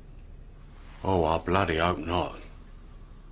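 A man speaks in surprise, close by.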